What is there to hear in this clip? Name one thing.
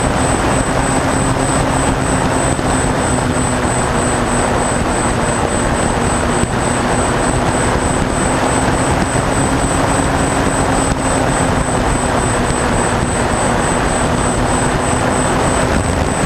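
A small plane's engine drones steadily and loudly.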